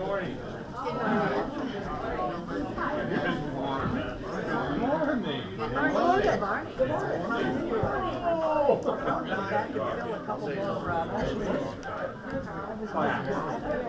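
A crowd of elderly men and women chat all around in a room with some echo.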